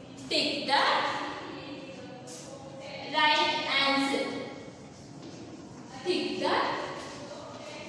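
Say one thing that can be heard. A woman speaks clearly in a slightly echoing room.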